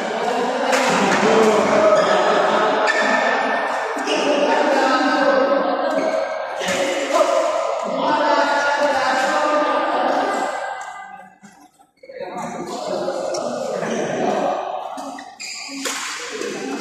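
A racket hits a shuttlecock with sharp taps.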